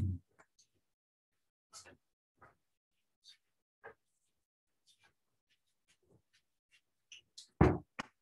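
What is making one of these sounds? A man's footsteps thud on a wooden floor.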